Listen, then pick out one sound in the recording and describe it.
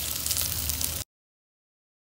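A wooden spoon scrapes against a pot.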